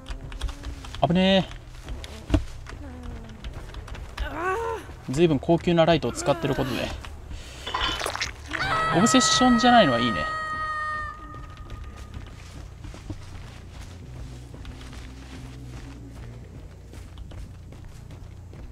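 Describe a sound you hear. Footsteps tread through tall grass and undergrowth.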